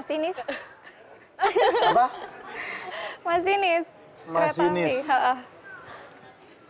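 A young woman answers and laughs.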